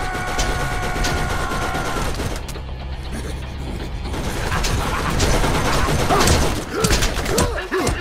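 A laser gun fires in sharp, repeated shots.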